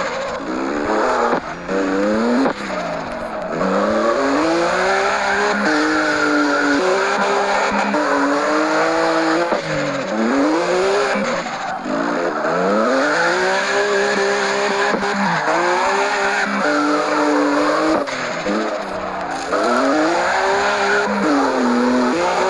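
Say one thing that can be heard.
Tyres screech while a car drifts through bends.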